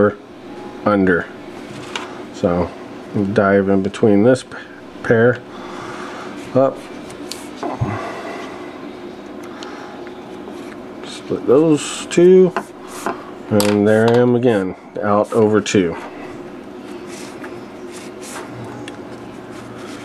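A cord rustles softly as it is worked through a braided knot.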